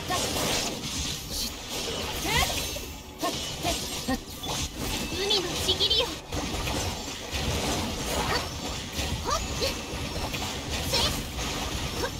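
Electric attacks crackle and burst in a video game battle.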